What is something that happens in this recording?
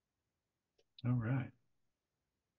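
A man speaks a few words briefly over an online call.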